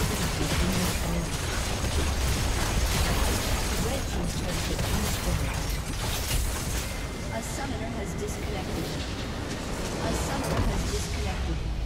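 Video game battle sound effects clash and crackle.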